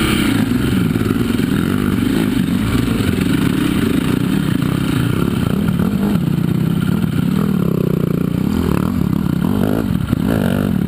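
A dirt bike engine revs and sputters up close.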